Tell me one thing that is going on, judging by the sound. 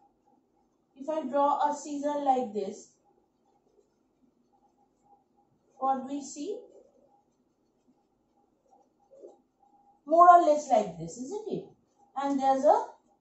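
A woman speaks calmly and clearly, close by, in short bursts with pauses.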